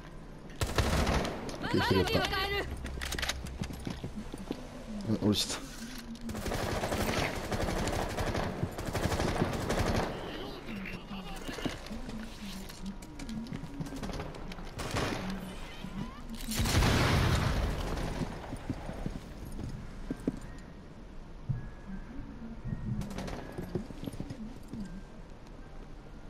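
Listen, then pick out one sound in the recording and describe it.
A rifle fires a quick burst of shots.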